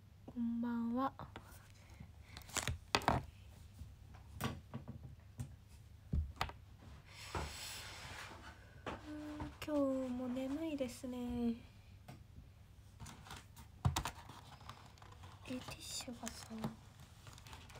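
A young woman speaks softly and close up, drawing out some sounds.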